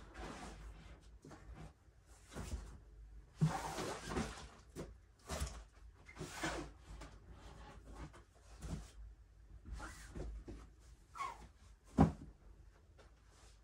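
Plastic storage bins knock and thud as they are set down and stacked.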